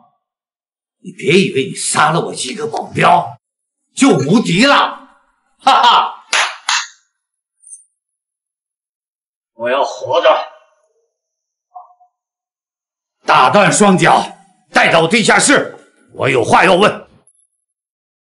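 A middle-aged man speaks mockingly, close by.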